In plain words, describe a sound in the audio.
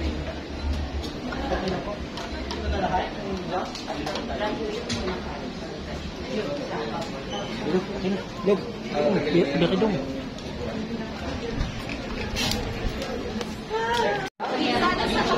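Two women talk calmly nearby in a room.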